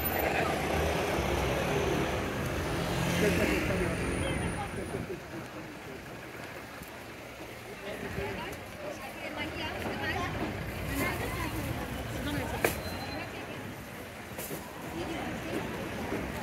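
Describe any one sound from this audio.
Traffic rumbles past on a busy street.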